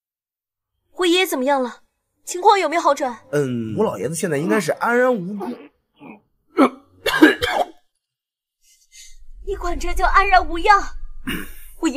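A young woman speaks sharply and with emotion.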